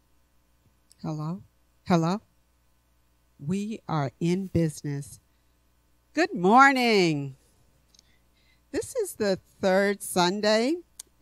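An older woman speaks calmly into a microphone in an echoing hall.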